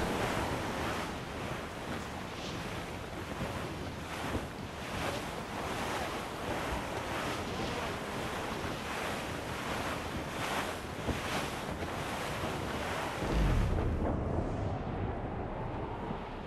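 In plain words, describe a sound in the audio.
Waves crash and splash against a ship's hull.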